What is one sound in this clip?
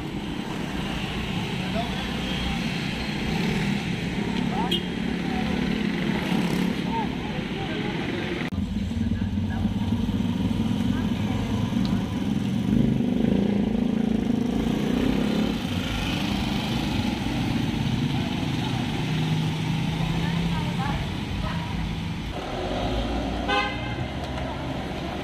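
Street traffic rumbles steadily outdoors.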